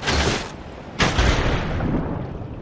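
A body splashes hard into water.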